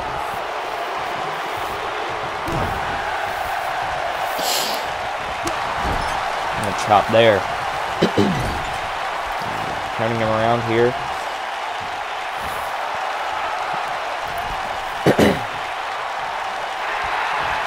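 A large crowd cheers and murmurs steadily in an arena.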